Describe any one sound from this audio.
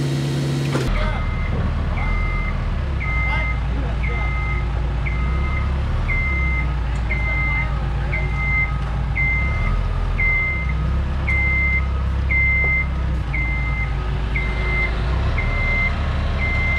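A lift's electric motor whirs as the lift drives along.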